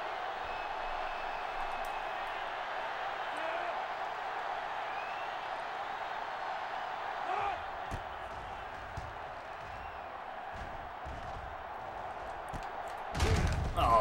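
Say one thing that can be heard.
A stadium crowd roars steadily in the distance.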